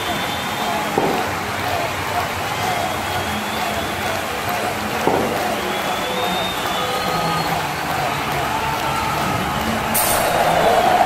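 A cricket bat knocks a ball.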